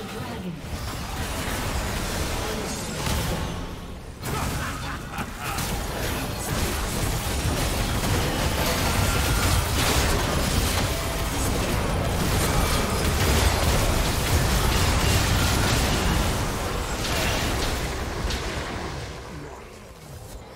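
Game spell effects and weapon hits clash and crackle in a busy fight.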